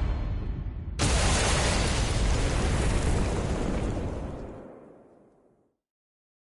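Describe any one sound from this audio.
A loud explosion booms and slowly rumbles away.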